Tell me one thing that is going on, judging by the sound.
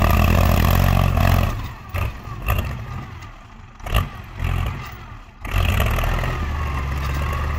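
A diesel tractor engine rumbles and roars loudly nearby.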